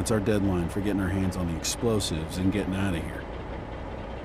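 A man speaks calmly in a deep voice, close by.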